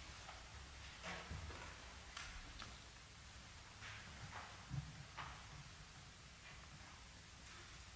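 Footsteps pace slowly across a hard floor in a quiet, echoing room.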